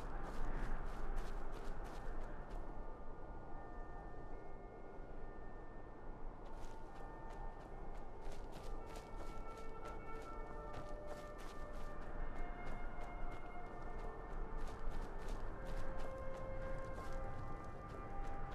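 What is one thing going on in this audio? Armoured footsteps crunch steadily over grass and rock.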